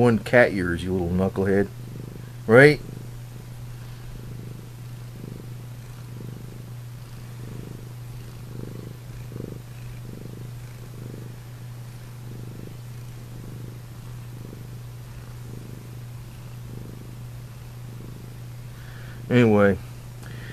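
A cat meows loudly up close.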